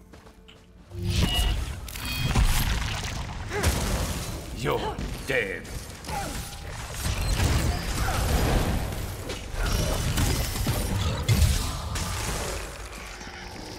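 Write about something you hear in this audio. Weapons strike with sharp impacts.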